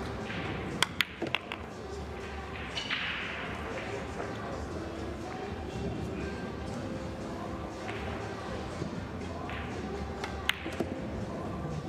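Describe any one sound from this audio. Pool balls clack against each other.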